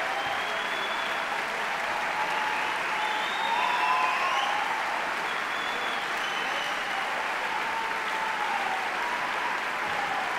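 A large orchestra plays in an echoing concert hall.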